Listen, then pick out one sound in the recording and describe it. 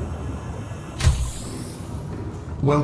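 A hatch hisses open.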